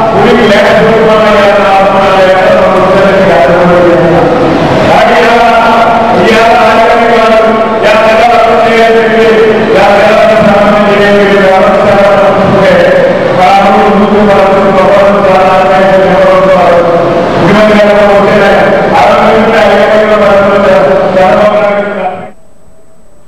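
A middle-aged man speaks forcefully into a microphone through loudspeakers in an echoing hall.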